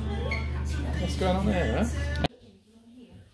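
People chat and laugh around a table in a busy, noisy room.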